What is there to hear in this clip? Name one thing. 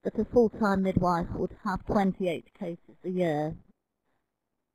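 A woman speaks calmly over an online call, then falls silent.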